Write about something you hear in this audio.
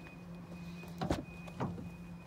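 A car door unlatches with a click and swings open.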